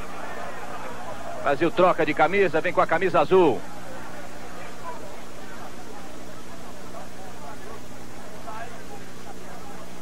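A large crowd murmurs in the distance of an open stadium.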